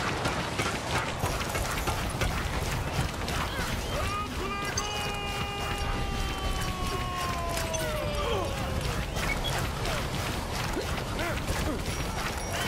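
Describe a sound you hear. Rapid weapon blasts crackle and pop in a video game.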